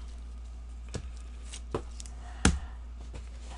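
A cardboard box knocks softly against a table.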